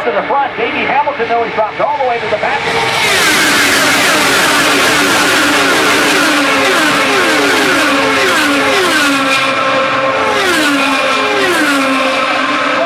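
Race cars roar past at high speed, their engines whining down as they go by.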